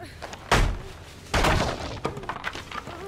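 Wooden boards crash and splinter as they are smashed.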